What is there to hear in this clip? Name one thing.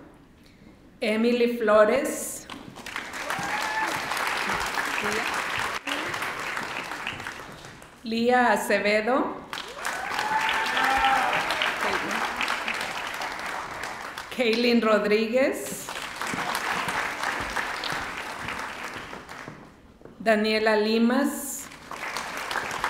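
A woman reads out names through a microphone and loudspeakers.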